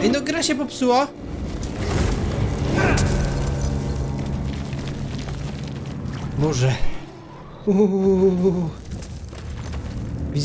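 A lightsaber hums and whooshes as it swings.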